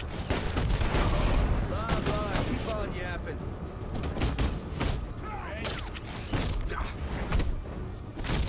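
Punches and kicks land with heavy thuds during a brawl.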